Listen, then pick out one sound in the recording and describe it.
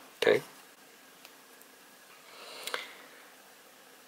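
A card is set down on a table with a soft tap.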